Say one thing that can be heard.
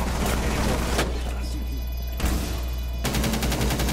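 Gunshots strike thick glass with sharp cracks.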